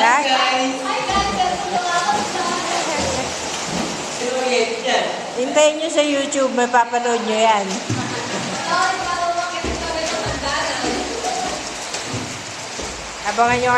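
Water splashes as a swimmer kicks hard through a pool.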